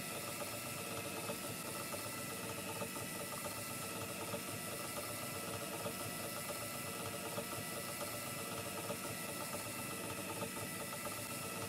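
A spinning record hisses and crackles softly.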